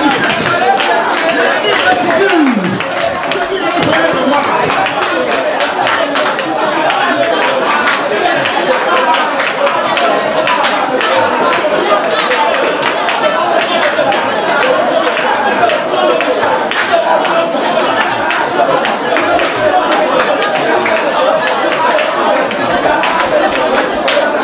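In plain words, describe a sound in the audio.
A crowd of men and women sing and pray aloud together.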